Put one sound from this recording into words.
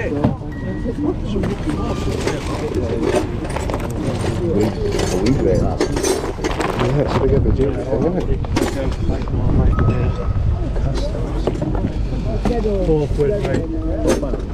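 A metal rack rattles and clanks as it is handled.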